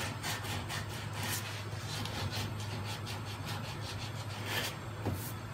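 Sandpaper rasps back and forth over a car body panel in quick, rhythmic strokes.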